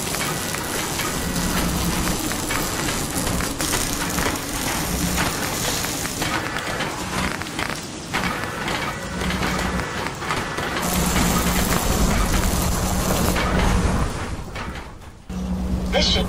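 A mechanical arm whirs and sparks as it welds.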